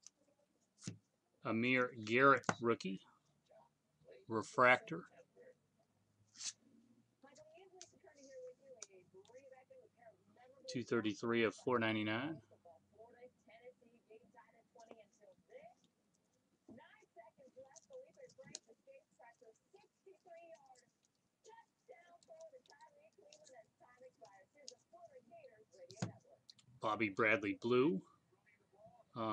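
Glossy trading cards slide and rustle between fingers.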